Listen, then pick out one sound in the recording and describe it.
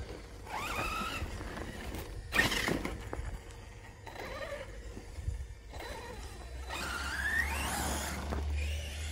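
A radio-controlled monster truck's brushless electric motor whines as it speeds up on grass.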